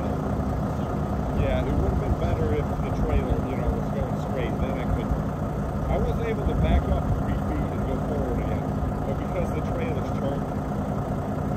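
A man talks calmly outdoors, a short way off.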